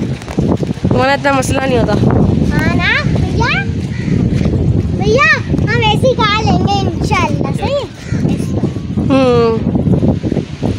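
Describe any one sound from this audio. A young girl speaks in a high, lively voice.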